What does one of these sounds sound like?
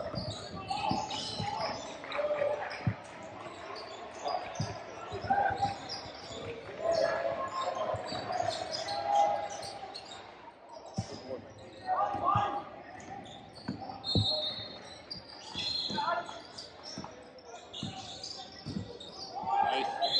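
Sneakers squeak sharply on a court floor.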